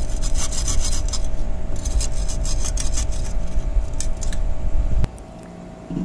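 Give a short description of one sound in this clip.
A metal tool scrapes against dry clay.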